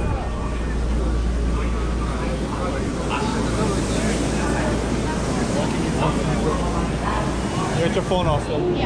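A train rumbles along with a low steady drone.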